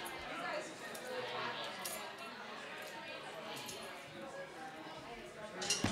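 A crowd of men and women chatter and talk at once in a lively room.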